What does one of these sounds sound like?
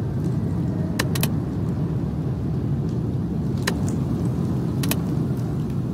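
A mouse button clicks a few times.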